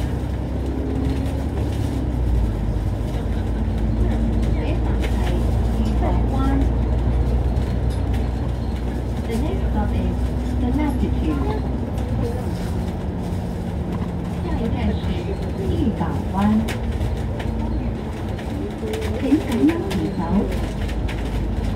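Tyres roll and hum on the road surface.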